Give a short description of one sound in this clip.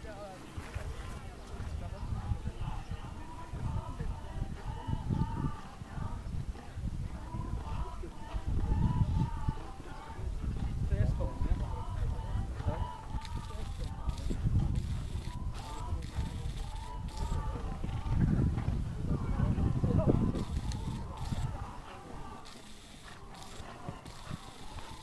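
A horse's hooves thud on soft sand as it canters and jumps.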